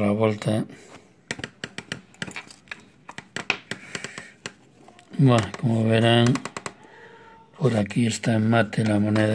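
A thin stick taps and scrapes against a metal coin.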